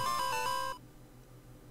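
A short electronic game jingle plays with beeping tones.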